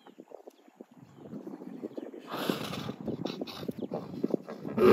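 A hippo grunts and huffs low and close by.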